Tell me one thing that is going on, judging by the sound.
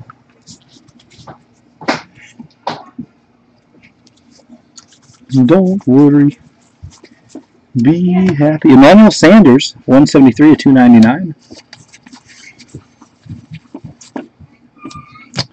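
Stiff paper cards rustle and flick as they are shuffled by hand.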